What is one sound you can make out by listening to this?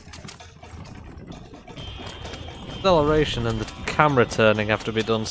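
Horse hooves clop on a dirt track.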